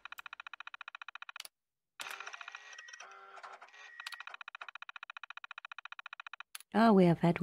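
A computer terminal chirps rapidly as text prints out.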